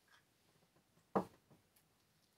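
A candle holder is set down on a wooden surface with a soft knock.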